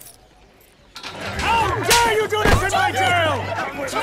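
A crowd of men and women shouts loudly during a scuffle.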